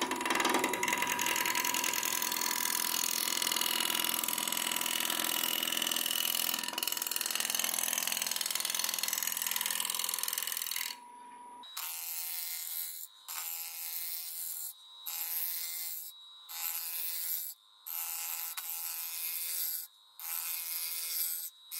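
A wood lathe spins with a steady whir.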